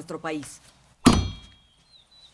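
A knife stabs with a sharp thud into a wooden table.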